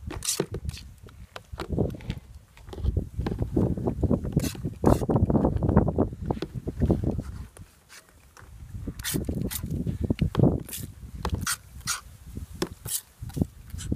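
A spray bottle squirts water in quick bursts.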